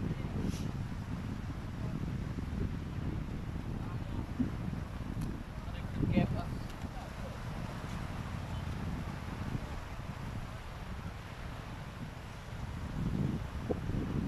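Wind blows outdoors with a low rumble.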